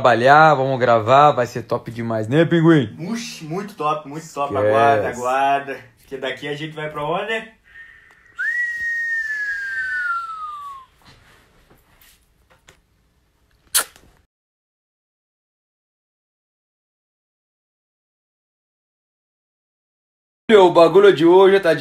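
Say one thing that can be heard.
A young man sings close by.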